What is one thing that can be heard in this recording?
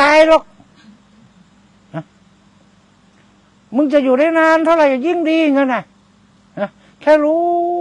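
An elderly man chants in long, sustained tones through a microphone, pausing between phrases.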